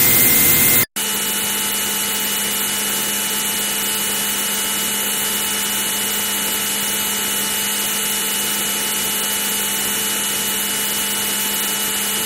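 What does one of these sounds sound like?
A synthesized fighter jet engine hums more softly from inside the cockpit in an old computer game.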